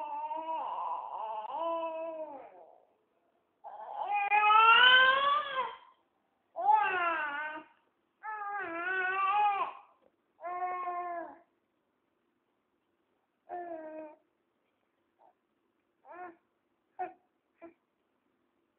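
A baby babbles and cries in high, wavering bursts close by.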